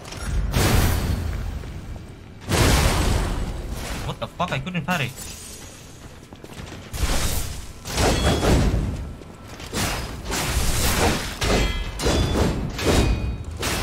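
Crackling energy bursts roar loudly.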